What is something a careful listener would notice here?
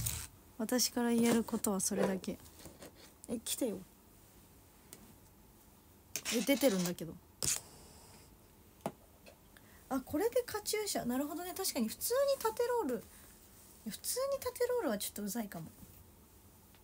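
A young woman speaks calmly and close to a microphone, in short phrases with pauses.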